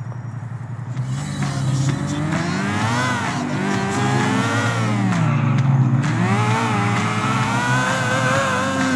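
A motorcycle engine revs and roars, rising and falling in pitch as it speeds away.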